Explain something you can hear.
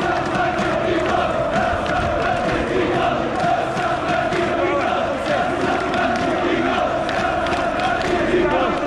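A huge crowd chants and cheers loudly outdoors.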